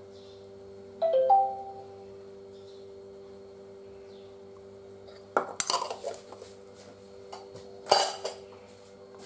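A spoon clinks and scrapes against a glass plate.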